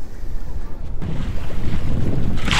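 A wire trap splashes into the water.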